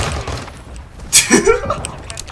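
A shotgun fires loudly.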